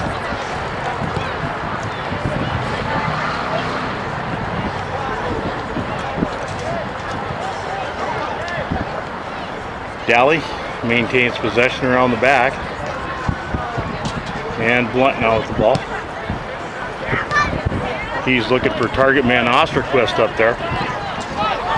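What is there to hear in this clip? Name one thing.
Young players shout to one another across an open field outdoors.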